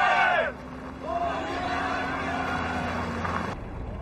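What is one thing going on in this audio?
A car engine hums slowly past.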